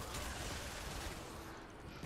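A gun fires in quick shots.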